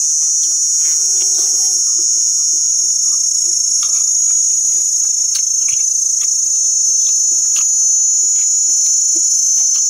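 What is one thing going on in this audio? A young woman chews food.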